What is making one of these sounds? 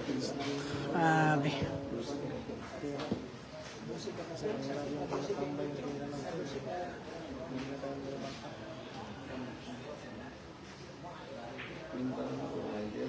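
A crowd of men chatters all around in a large room.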